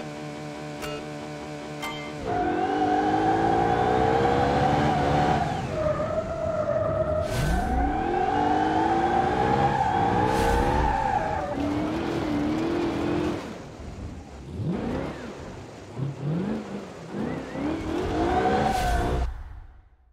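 A buggy engine idles, then revs hard and whines up through the gears.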